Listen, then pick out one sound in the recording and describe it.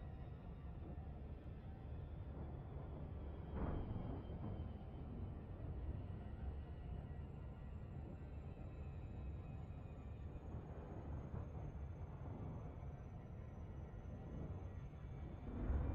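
A spacecraft's engines hum low and steady.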